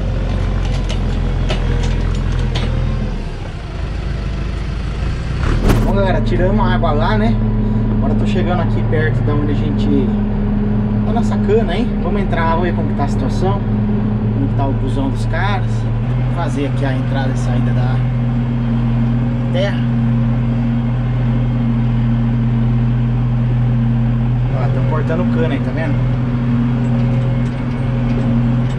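A tractor engine drones steadily, heard outdoors and then from inside its cab.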